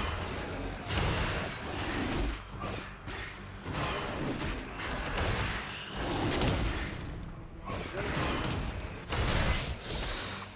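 Magic spells whoosh and crackle in a fight between game characters.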